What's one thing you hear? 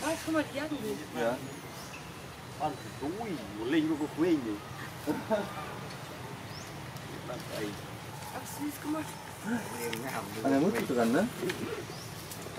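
A baby monkey squeaks and cries in high, wavering calls.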